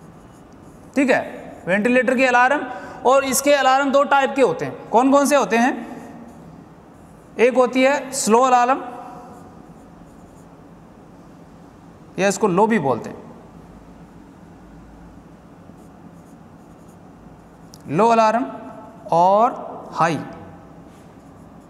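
A man speaks clearly and with emphasis, close to a microphone, in short bursts with pauses.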